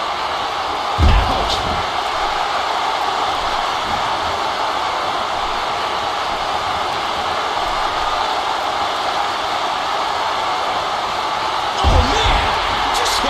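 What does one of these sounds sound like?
A wrestler's body slams heavily onto the ring mat.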